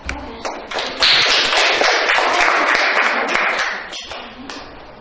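A group of children applaud loudly.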